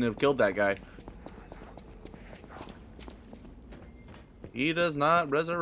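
Footsteps tread on a hard floor at a steady walking pace.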